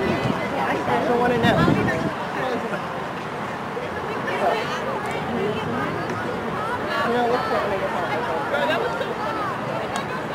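Young women shout and call out to each other across an open field.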